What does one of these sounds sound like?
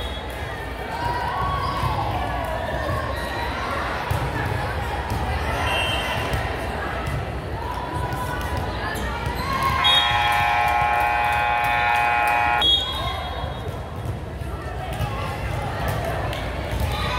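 Young women call out to each other across the gym.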